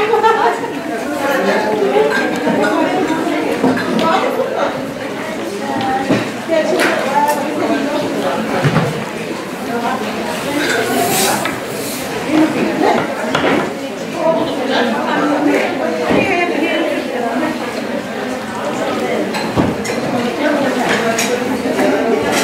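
Several women chatter nearby.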